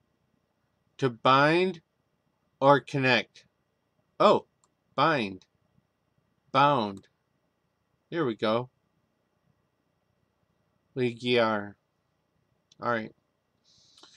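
An older man speaks calmly in short phrases close to a microphone.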